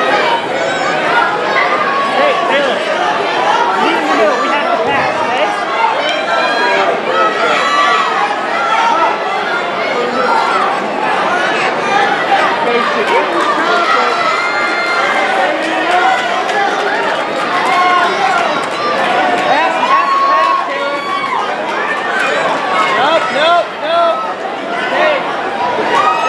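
A large crowd of men, women and children shouts and cheers, echoing in a big hall.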